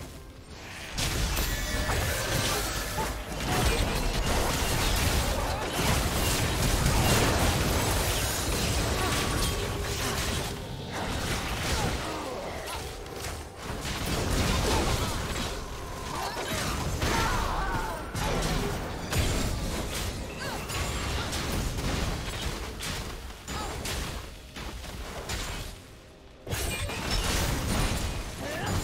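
Game spell effects and combat clashes crackle and boom.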